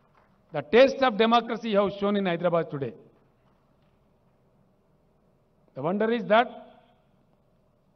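A middle-aged man speaks forcefully into a microphone over a loudspeaker, with pauses.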